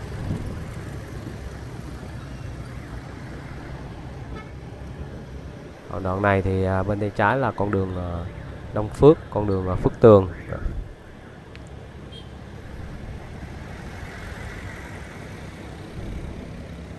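A motor scooter engine hums steadily.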